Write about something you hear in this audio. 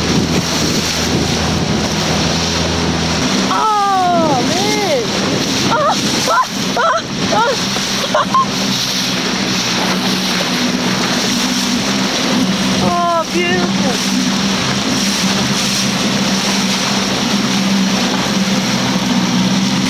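Water rushes and splashes along a moving boat's hull.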